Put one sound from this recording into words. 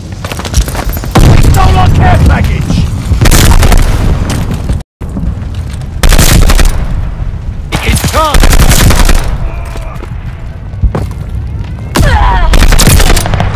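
Explosions boom.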